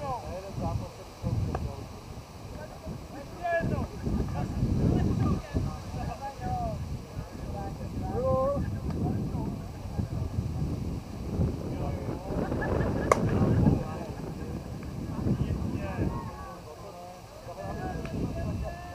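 Men call out and shout across an open field.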